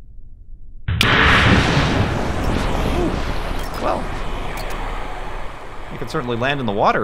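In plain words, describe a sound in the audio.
A capsule splashes down hard into water with a loud rushing roar.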